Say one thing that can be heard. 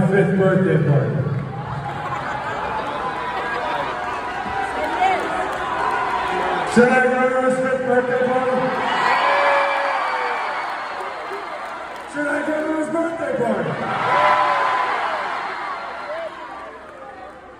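A large crowd cheers and shouts.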